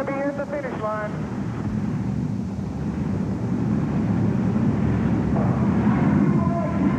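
Large truck engines rumble loudly in a big echoing arena.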